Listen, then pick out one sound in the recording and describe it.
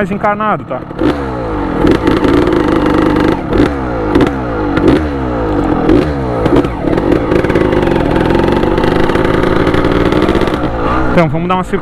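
A motorcycle engine revs up and shifts through gears close by.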